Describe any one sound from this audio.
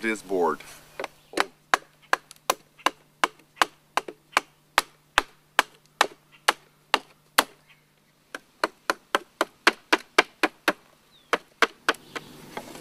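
A wooden pole knocks sharply and rhythmically against wood.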